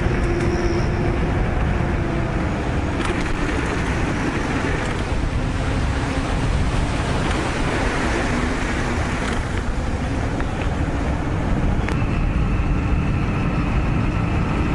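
Bike tyres roll over a paved path.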